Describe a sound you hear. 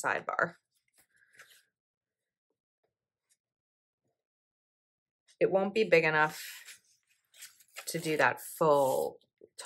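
Paper sheets rustle and crinkle as they are handled.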